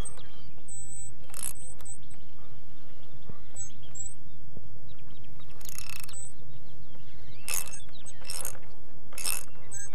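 A screwdriver clicks and scrapes against metal.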